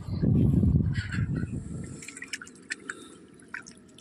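Water splashes and drips as a fishing net is lifted out of the water.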